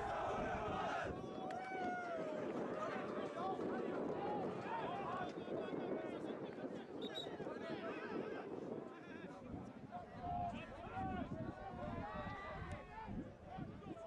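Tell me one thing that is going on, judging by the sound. Young men call out to one another across an open field.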